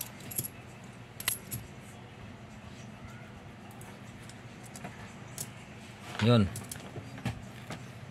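Metal coins clink against each other as they are stacked and set down.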